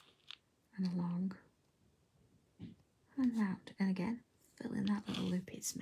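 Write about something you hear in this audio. A felt-tip pen squeaks softly on paper.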